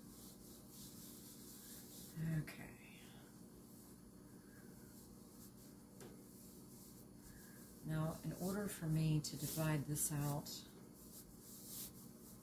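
Hands press and knead soft dough.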